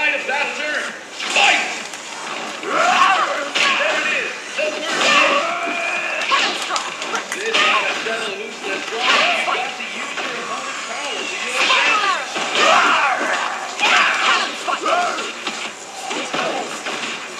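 Fighting game punches and kicks land with sharp thuds through a speaker.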